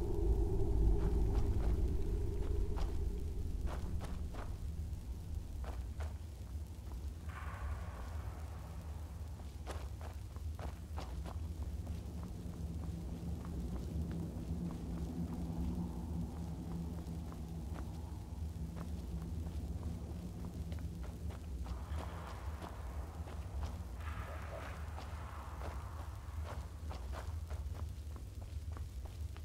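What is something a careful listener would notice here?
Footsteps scrape on rocky ground.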